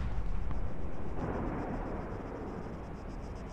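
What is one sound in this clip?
A heavy explosion booms and rumbles away.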